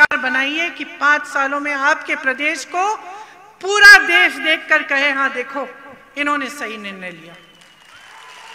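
A woman speaks forcefully through a microphone over loudspeakers.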